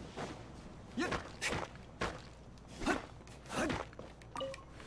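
A sharp whooshing strike sounds as a game character attacks.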